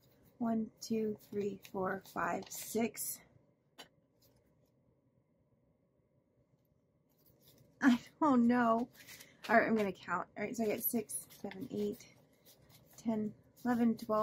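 Paper bills rustle and flap as they are counted by hand.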